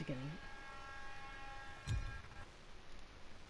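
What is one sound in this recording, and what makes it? A game menu plays a short musical tone.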